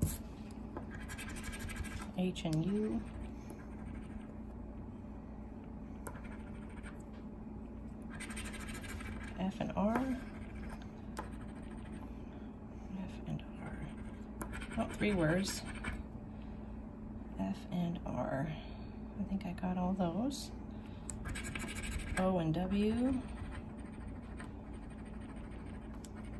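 A coin scratches back and forth across a card in short bursts.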